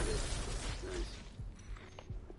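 Gunfire rings out and echoes indoors.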